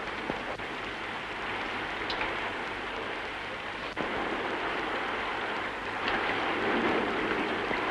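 Heavy rain hisses steadily onto open water.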